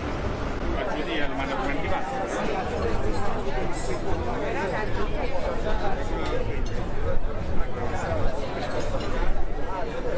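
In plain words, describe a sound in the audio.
Many people chatter at outdoor tables nearby.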